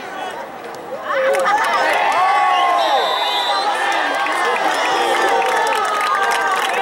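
A crowd in the stands cheers and yells.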